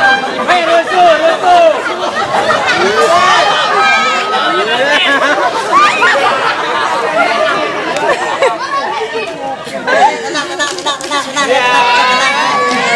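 A crowd of young people laughs close by.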